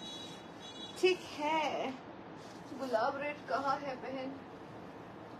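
A young woman talks nearby in a lively voice.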